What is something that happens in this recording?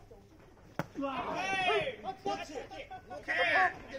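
Young men shout and cheer loudly outdoors.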